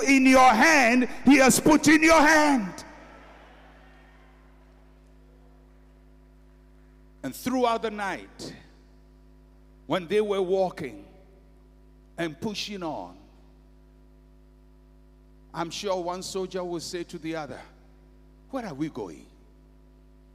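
A man preaches loudly and with passion into a microphone, heard through loudspeakers in a large echoing hall, in short bursts with pauses.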